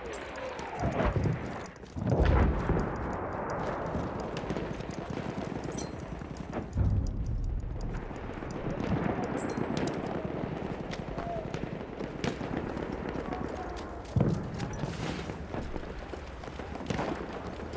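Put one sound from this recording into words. Gunshots crack with loud booms.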